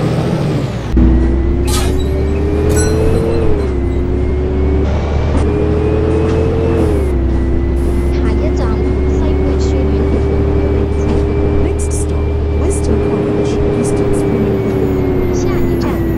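A bus engine revs up and pulls away, rising and falling in pitch as it changes gear.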